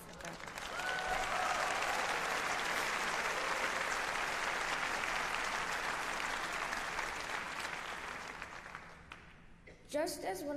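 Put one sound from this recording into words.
An audience applauds in a large hall and the applause slowly dies down.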